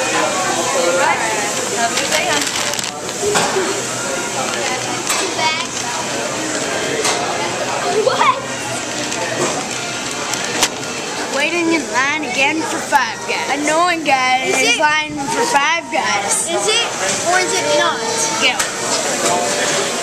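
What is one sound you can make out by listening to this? Young boys talk and laugh close by.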